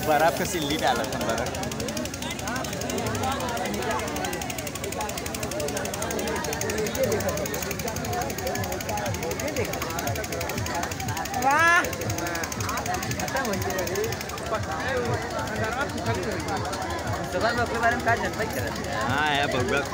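A crowd of people chatters and calls out throughout.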